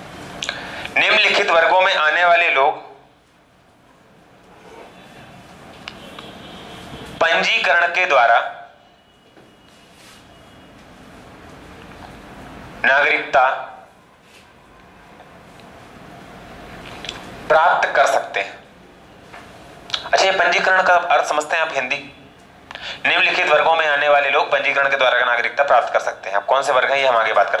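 A young man speaks animatedly through a close microphone, in bursts with pauses.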